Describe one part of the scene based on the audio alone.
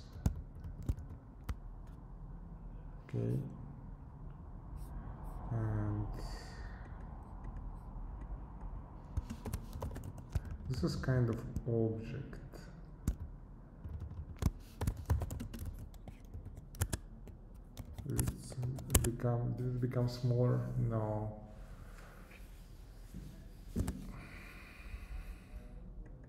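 Keys clack on a keyboard.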